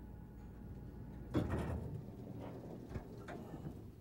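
Elevator doors slide open.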